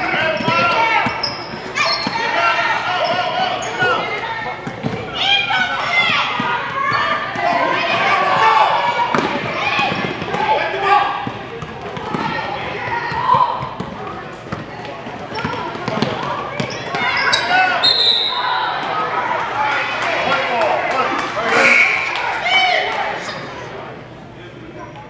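Children's voices shout and call out in a large echoing gym.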